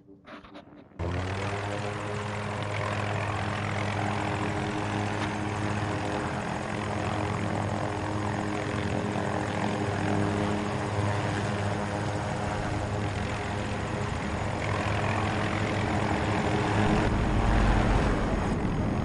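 A helicopter engine and rotor roar steadily and loudly.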